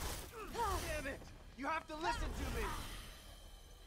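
A man shouts desperately.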